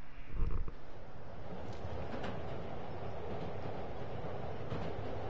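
A subway train rumbles along.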